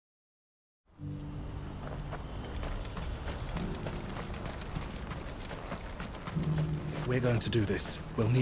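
Footsteps crunch on dirt.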